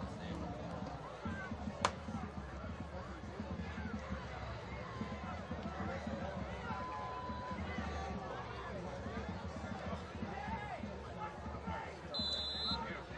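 A crowd of spectators cheers and chatters steadily outdoors.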